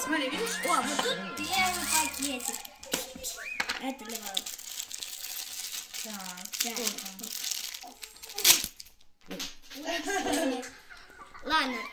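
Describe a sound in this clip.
Plastic wrapping crinkles and rustles as it is unwrapped.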